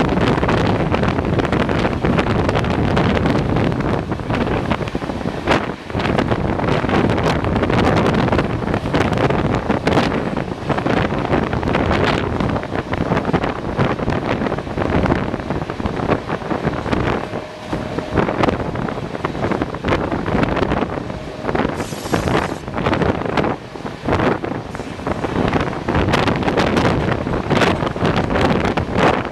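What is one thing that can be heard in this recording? Wind rushes past an open train door.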